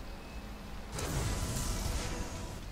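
A game's level-up chime rings out.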